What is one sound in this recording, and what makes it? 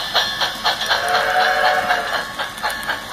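A model steam locomotive's sound unit blows its whistle.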